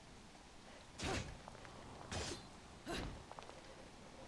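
Heavy blows whoosh and thud in short bursts.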